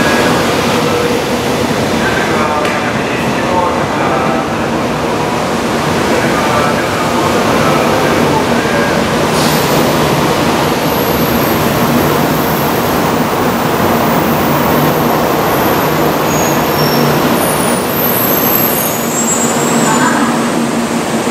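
A train rushes past close by with a steady, loud roar and rumble.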